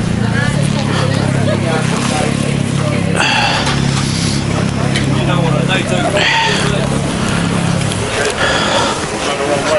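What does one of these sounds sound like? A crowd of men and women chatter in the open air.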